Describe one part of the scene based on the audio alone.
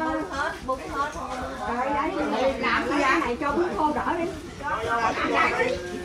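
Several women chatter nearby.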